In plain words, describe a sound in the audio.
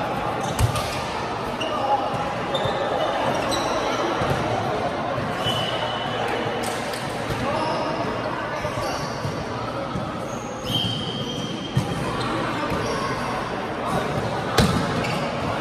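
A volleyball thuds as players strike it.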